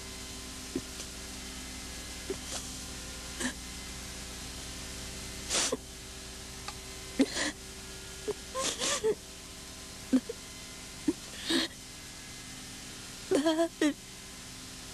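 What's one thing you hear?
A young woman sobs and weeps close by.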